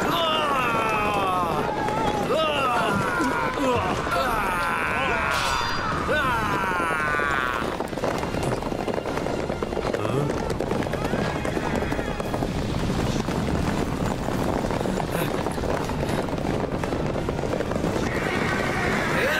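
Horses gallop across hard ground.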